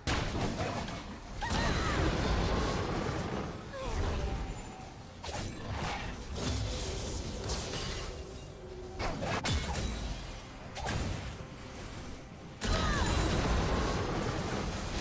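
Spell effects whoosh and burst during a fantasy battle.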